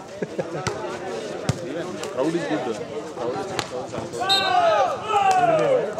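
A volleyball is struck hard with a slap.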